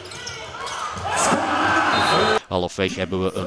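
A crowd cheers and claps in a large echoing hall.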